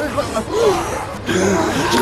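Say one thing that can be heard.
A man cries out in fear.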